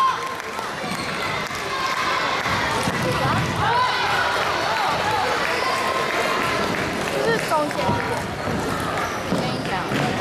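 Many people chatter and call out in a large, echoing hall.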